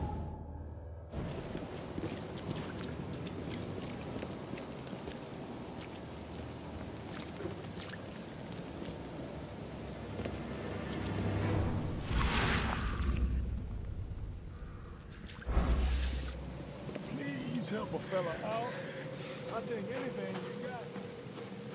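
Footsteps tap on wet pavement.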